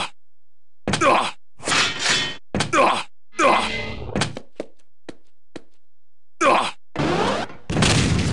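A short chime sounds as an item is picked up.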